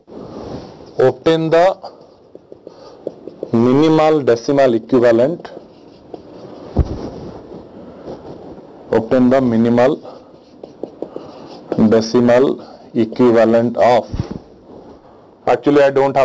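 A man speaks calmly, lecturing into a microphone.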